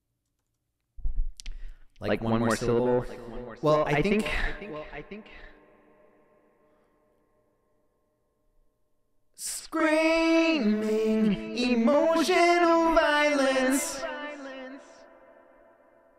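A man sings into a close microphone.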